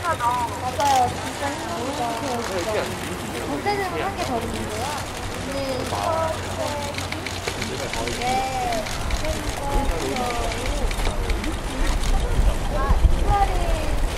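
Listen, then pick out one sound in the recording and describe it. A second young woman speaks softly into a microphone, reading out.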